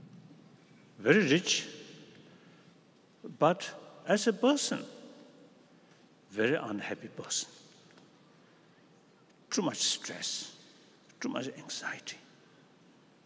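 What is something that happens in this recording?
An elderly man reads out slowly through a microphone, in short phrases with pauses, in a large echoing hall.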